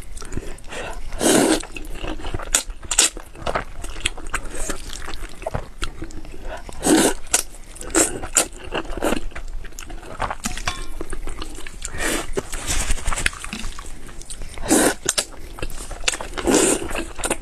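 A young woman chews wetly and smacks her lips, close to a microphone.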